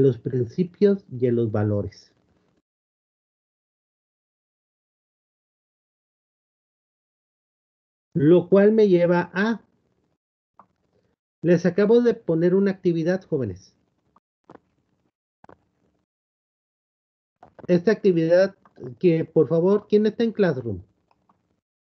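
A middle-aged man speaks calmly in bursts through an online call.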